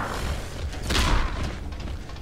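A heavy blow lands with a loud thud.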